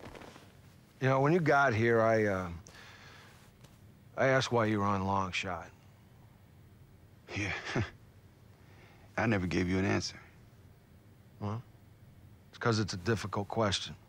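A middle-aged man speaks calmly and hesitantly, close by.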